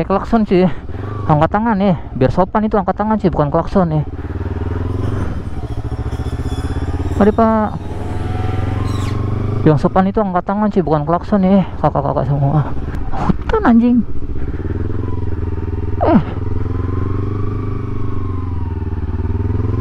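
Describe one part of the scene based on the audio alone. A motorcycle engine hums as the bike rides along a road.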